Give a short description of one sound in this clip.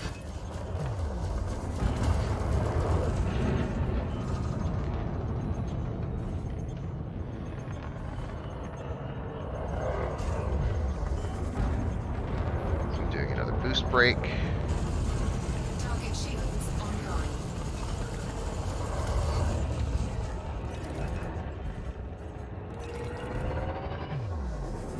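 A spacecraft engine hums with a deep, steady rumble.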